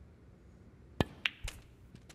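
A cue strikes a snooker ball with a sharp knock.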